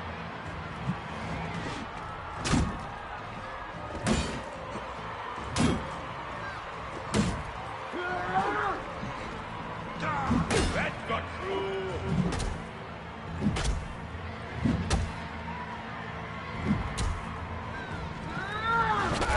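Metal weapons clash and thud in a fight.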